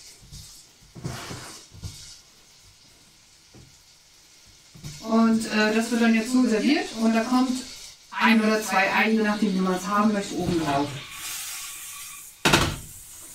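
Food sizzles in a frying pan.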